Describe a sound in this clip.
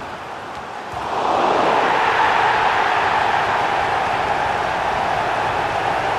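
A stadium crowd roars loudly in celebration.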